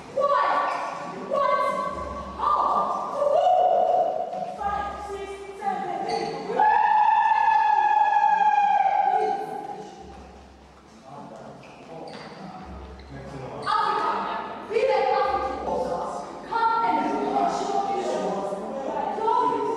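A group of young women and men sings loudly together in a room with a slight echo.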